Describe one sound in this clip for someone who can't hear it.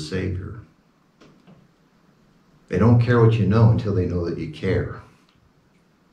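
A middle-aged man speaks calmly into a nearby microphone.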